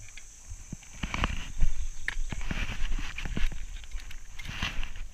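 A mountain bike rolls and rattles over a rough trail.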